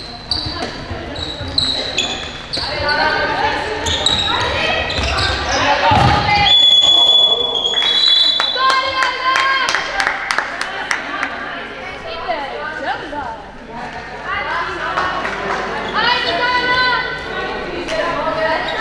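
Young girls call out and shout to each other.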